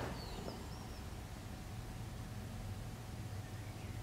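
Milk pours into a plastic container.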